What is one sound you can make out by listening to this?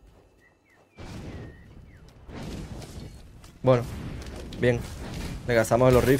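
Battle effects whoosh and crackle in a game.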